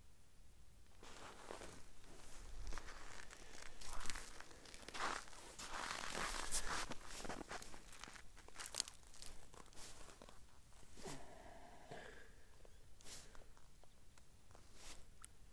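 A boot crunches and scrapes through slushy ice and snow.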